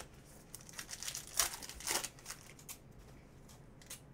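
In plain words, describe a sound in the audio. Foil wrapping crinkles and tears as it is pulled open.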